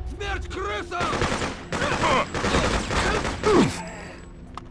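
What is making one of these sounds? Gunshots ring out in rapid bursts in a hard, echoing corridor.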